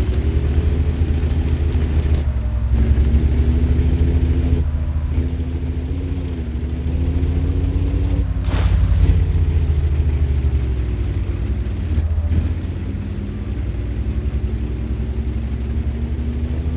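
A heavy tank engine rumbles and drones steadily.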